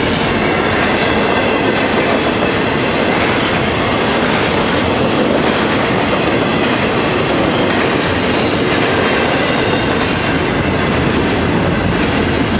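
A freight train rumbles and clatters past loudly.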